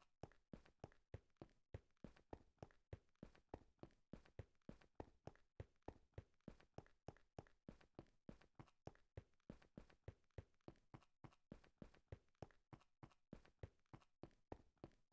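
Quick footsteps thud steadily on hard stone.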